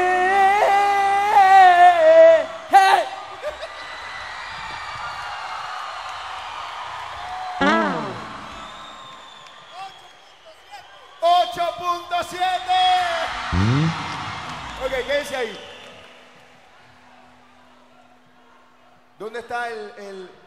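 A man speaks loudly and excitedly into a microphone over loudspeakers.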